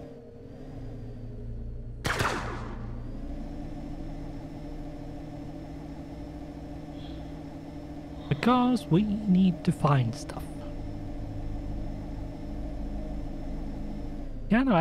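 A spacecraft engine hums low and steadily.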